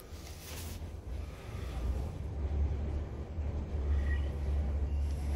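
A high-rise elevator car hums and rumbles low as it descends.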